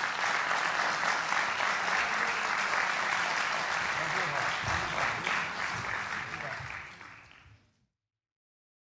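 An audience applauds in a large hall, then the applause fades out.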